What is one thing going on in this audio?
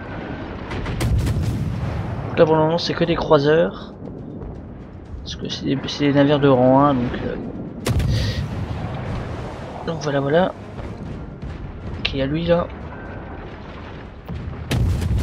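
Heavy naval guns fire with deep, booming blasts.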